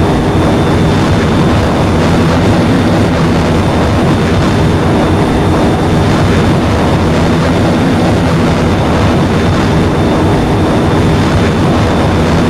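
A jet engine roars steadily as a fighter plane flies.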